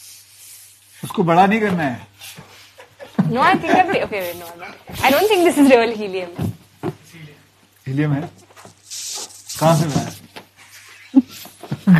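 A woman blows air into a balloon.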